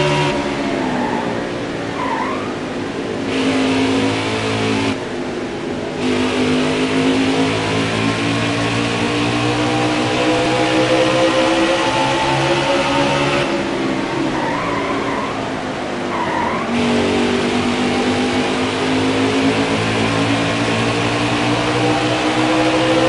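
Race car engines roar steadily at high revs.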